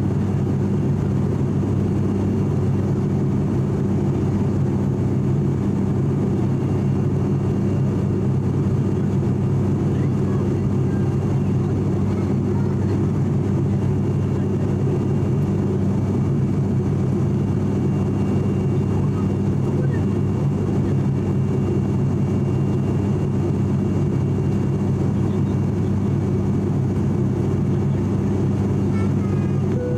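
A propeller plane's engines drone steadily from inside the cabin.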